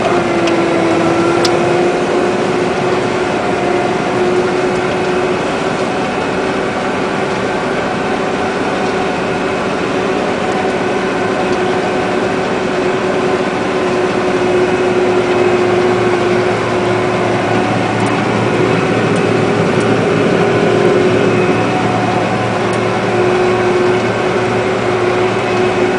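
A combine harvester's engine drones steadily from inside its cab.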